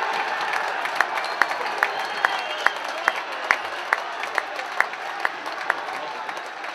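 Spectators clap in a slow, steady rhythm.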